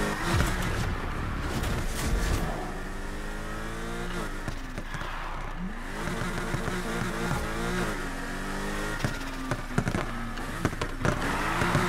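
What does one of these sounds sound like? A sports car engine roars and revs up and down through the gears.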